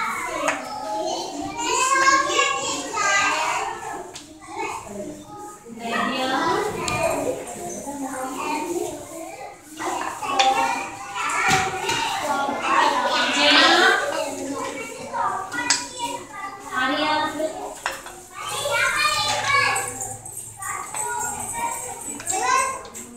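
Young children chatter nearby.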